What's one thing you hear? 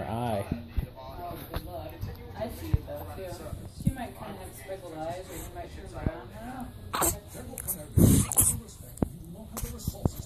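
A baby coos and gurgles close by.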